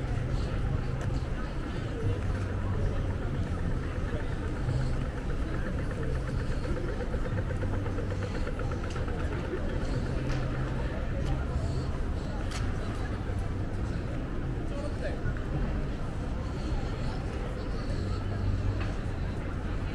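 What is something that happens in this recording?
Footsteps tap on paving close by.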